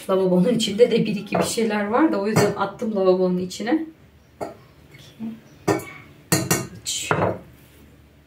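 A spoon scrapes and taps inside a container.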